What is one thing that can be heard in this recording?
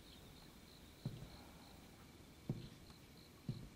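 Heavy footsteps thud slowly on a wooden floor.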